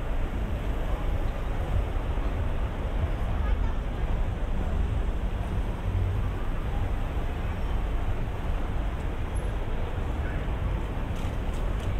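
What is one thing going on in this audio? A crowd of people murmurs and chatters in the street.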